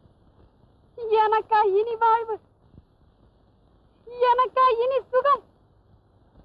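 A young woman sings a high, wailing melody in two short phrases.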